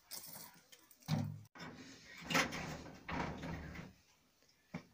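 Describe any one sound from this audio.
A sheet metal door rattles and bangs.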